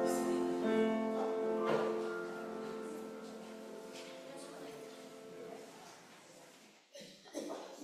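A piano plays a chord that rings and slowly fades.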